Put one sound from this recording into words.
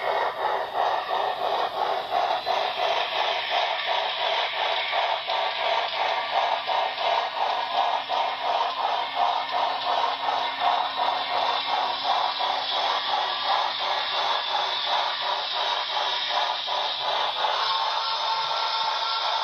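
Model train wheels rattle and click over the track.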